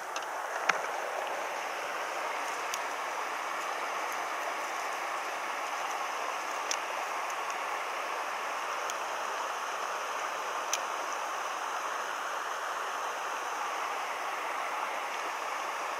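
Water rushes over rocks in a steady outdoor wash.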